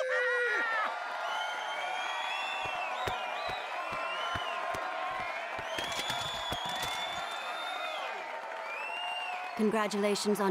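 Horns play a bright fanfare.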